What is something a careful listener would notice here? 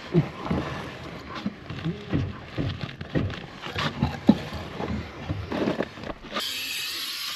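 A plastic bag rustles and scrapes as it is dragged close by.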